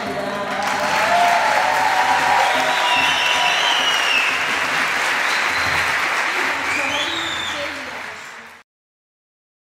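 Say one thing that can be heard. A choir of men and women sings together into a microphone.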